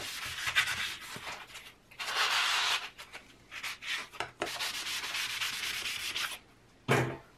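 A sanding block rasps back and forth on a plastic strip.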